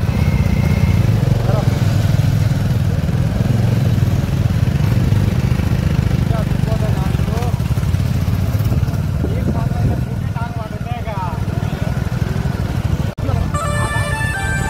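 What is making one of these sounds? Motorcycle engines rumble steadily close by.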